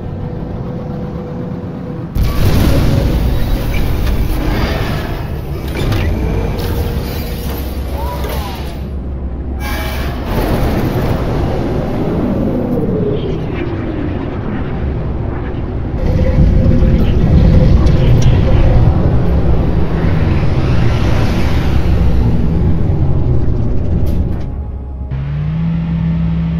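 A spaceship engine rumbles and whooshes steadily.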